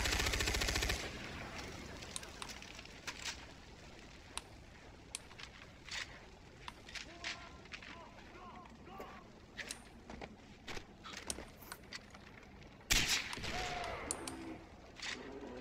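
Gunshots crack sporadically at a distance.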